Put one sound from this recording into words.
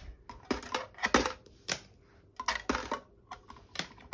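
Small dice click onto a hard surface.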